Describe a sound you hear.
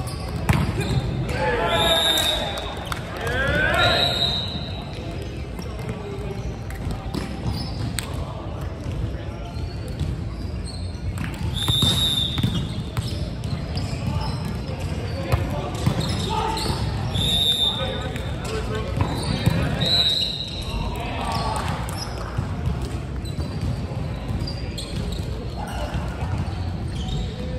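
Volleyball players shout to each other in a large echoing hall.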